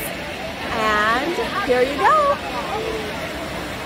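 A middle-aged woman speaks excitedly, close up.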